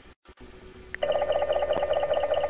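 A pulsing electronic tone sounds.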